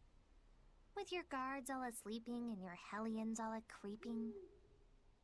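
A young girl speaks.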